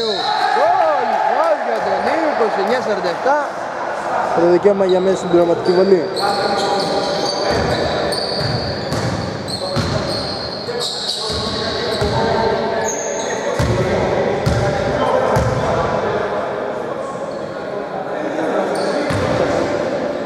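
Male players call out to each other across an echoing gym.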